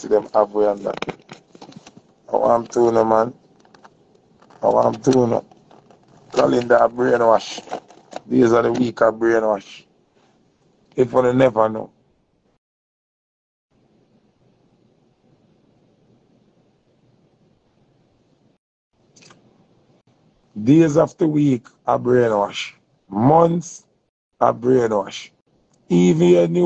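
A man speaks calmly and close to a phone microphone, in short bursts with pauses.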